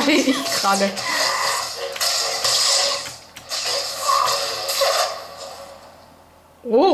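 Swords clash and blasters fire in a video game, heard through small speakers.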